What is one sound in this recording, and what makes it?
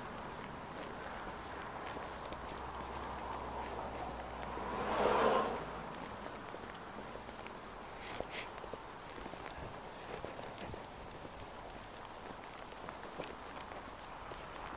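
Footsteps crunch on packed snow and ice.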